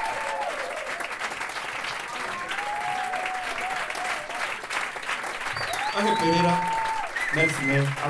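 An audience cheers and applauds.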